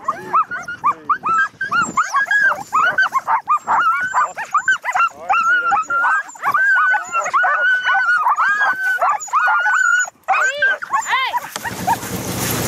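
Sled dogs yelp and howl excitedly.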